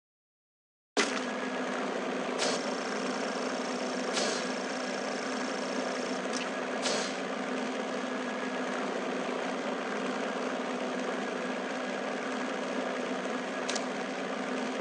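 A propeller plane's engines drone steadily.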